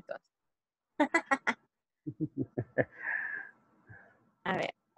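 A young woman laughs through an online call.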